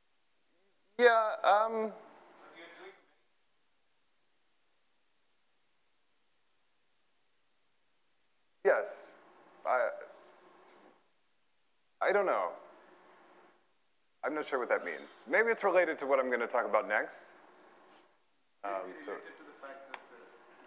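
A man lectures through a microphone in a large echoing hall, speaking in short bursts with pauses.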